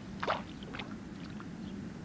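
A water bird splashes in water.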